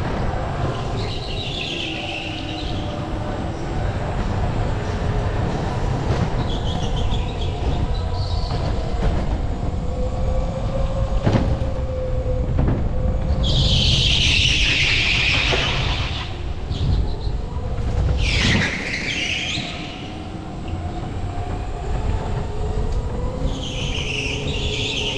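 Kart tyres squeal through the corners.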